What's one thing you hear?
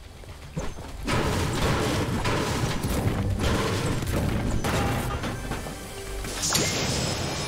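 A pickaxe repeatedly strikes and smashes through walls.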